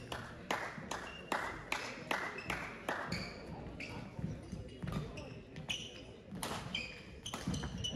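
Shoes squeak on a sports floor.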